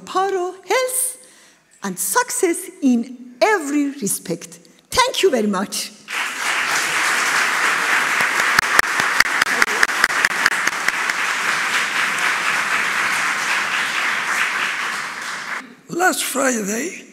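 A middle-aged woman speaks with emotion into a microphone.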